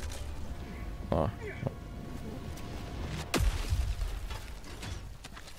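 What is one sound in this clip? A deep blast booms with a low rumble.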